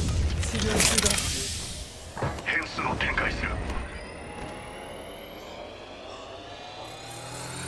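A healing device whirs with a slowly rising whine.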